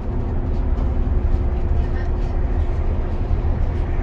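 A truck passes close by with a deep rumble.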